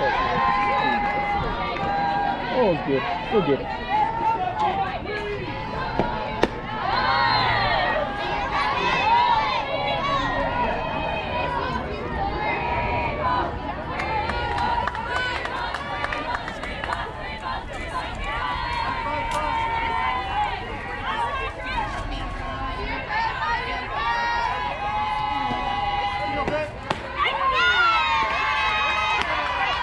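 Young girls shout and cheer close by.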